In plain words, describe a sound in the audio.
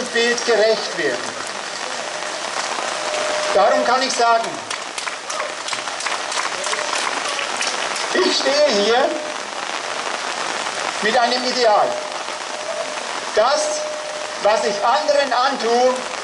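A man speaks through a microphone and loudspeaker outdoors, pausing between phrases.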